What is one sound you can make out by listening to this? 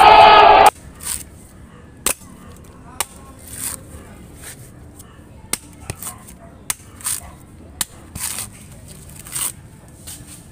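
A heavy blade chops hard into a coconut shell with sharp knocks.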